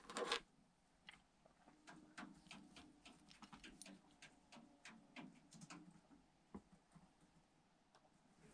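A plastic cable clip clicks and taps as it is handled.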